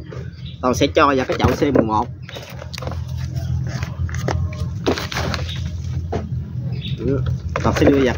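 A plastic pot crinkles and rustles in a man's hands.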